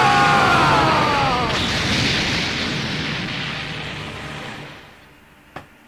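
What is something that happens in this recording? A large explosion roars and rumbles, then fades.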